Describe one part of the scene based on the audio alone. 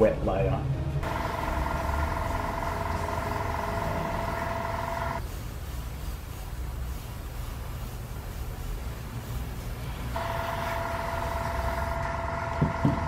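An airbrush hisses as it sprays paint.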